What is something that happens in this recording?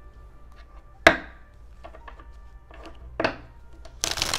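Playing cards snap down onto a table.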